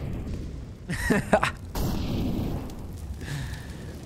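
A rifle fires a quick burst.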